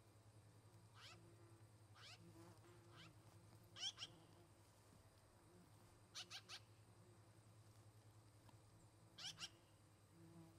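Young birds give short, sharp high calls close by.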